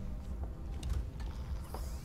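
An electronic tracker beeps softly.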